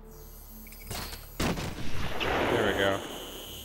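A grappling line fires and zips through the air.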